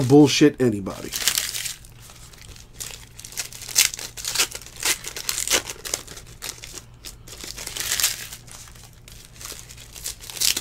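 Trading cards rustle and slide against each other as they are shuffled by hand.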